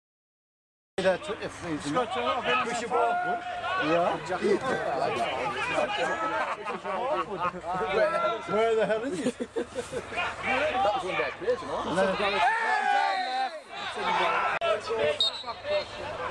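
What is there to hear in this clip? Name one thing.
Men in a crowd nearby talk and call out.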